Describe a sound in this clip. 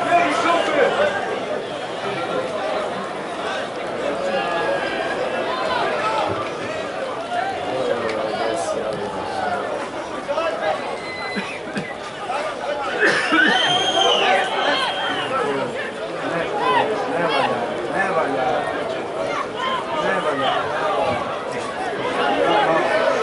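A crowd of spectators chants and shouts across an open stadium.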